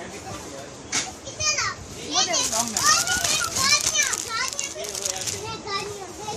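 Young children shout and chatter close by.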